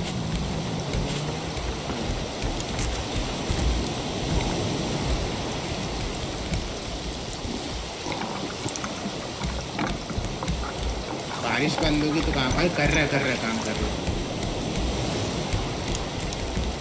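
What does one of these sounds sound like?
Sea waves lap steadily.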